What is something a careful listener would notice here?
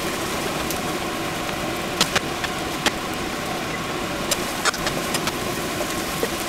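Food sizzles steadily in hot pans.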